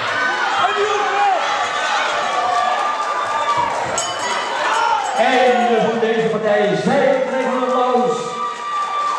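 A man shouts encouragement from ringside.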